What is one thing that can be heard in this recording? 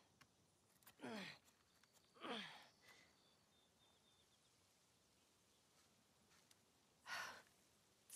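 A knife scrapes and scratches into tree bark in short bursts.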